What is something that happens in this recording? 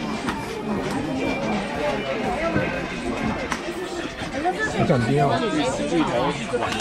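A crowd of young people chatter and laugh close by, outdoors.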